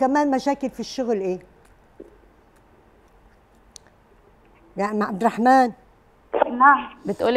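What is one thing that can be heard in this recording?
An elderly woman speaks calmly into a microphone, with pauses.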